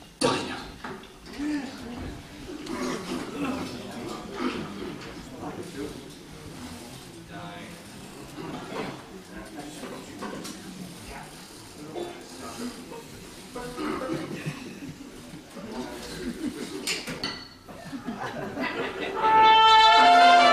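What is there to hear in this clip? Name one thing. A jazz band plays with horns and drums.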